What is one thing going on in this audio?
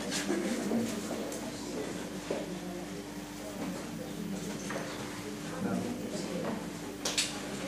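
A microphone rustles and knocks as it is clipped onto a jacket.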